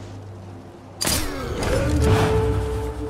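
A silenced pistol fires a muffled shot.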